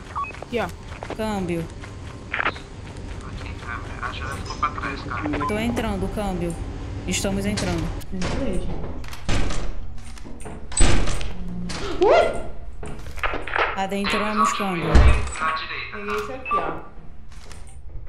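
A teenage boy talks with animation into a close headset microphone.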